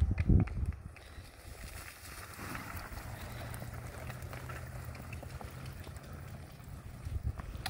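A miniature horse pulls a cart through grass.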